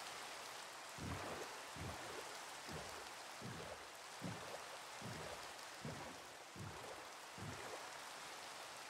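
Oars splash rhythmically as a boat is rowed across water.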